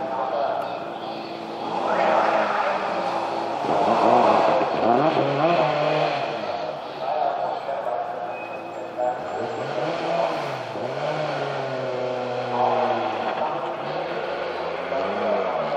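A rally car engine roars loudly, revving up and down through gear changes.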